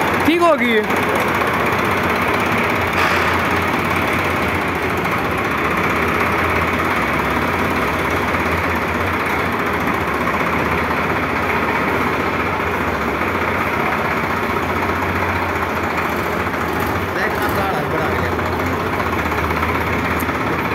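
A tractor's diesel engine idles with a steady low rumble.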